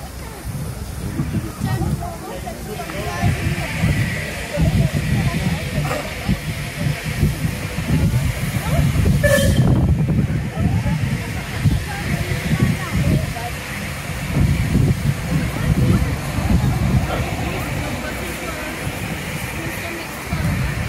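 A crowd of adults chatters at a distance.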